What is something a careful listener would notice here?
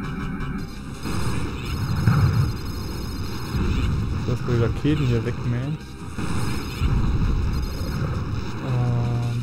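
An electric beam crackles and buzzes.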